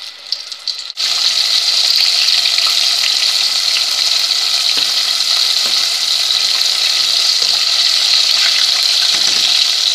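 Hot oil sizzles and crackles steadily as food deep-fries.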